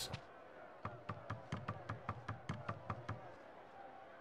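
Quick light footsteps tap on wooden boards.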